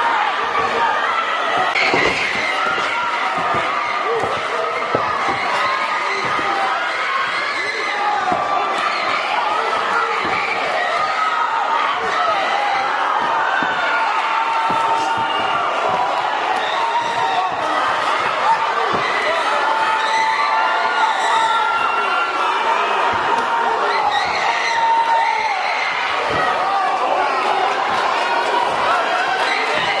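A crowd cheers and shouts loudly in an echoing hall.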